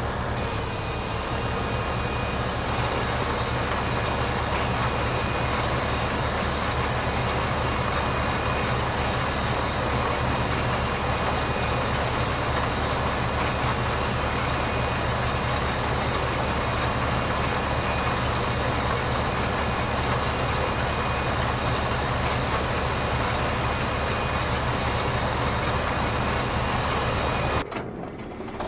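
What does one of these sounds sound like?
A seed drill rattles as a tractor pulls it.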